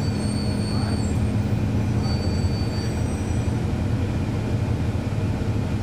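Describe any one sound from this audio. A bus engine idles with a steady low rumble close by.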